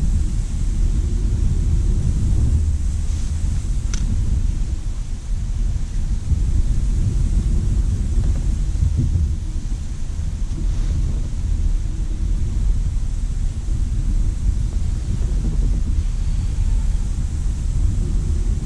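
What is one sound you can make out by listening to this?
Wind buffets loudly outdoors with a steady low rumble.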